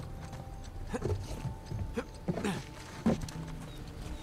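A man grunts with effort as he climbs.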